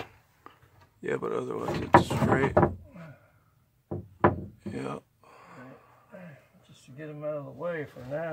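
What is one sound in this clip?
Wooden boards knock and clatter close by.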